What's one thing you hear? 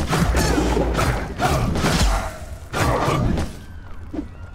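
A sword slashes through the air with a whoosh.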